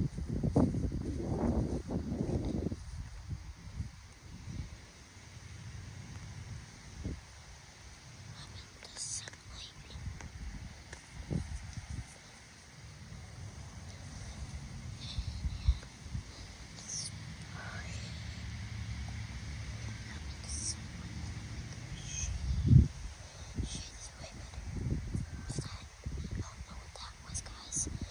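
A young boy talks close to the microphone.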